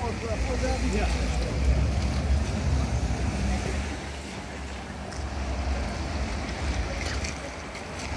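Cars drive past on a wet road, tyres hissing.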